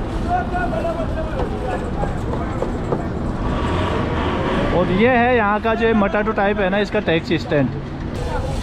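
A busy crowd of men and women chatters outdoors.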